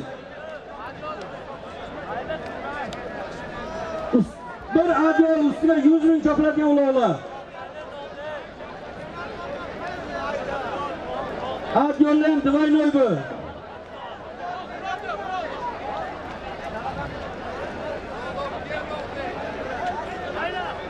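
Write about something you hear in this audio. A large crowd of men chatters and calls out in the distance outdoors.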